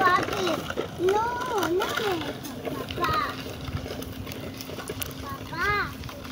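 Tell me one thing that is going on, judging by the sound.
Small plastic scooter wheels roll and rattle on asphalt.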